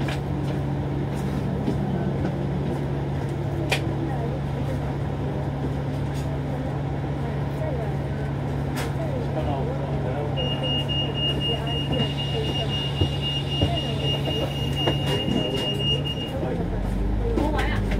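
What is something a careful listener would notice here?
Traffic rumbles past on the road.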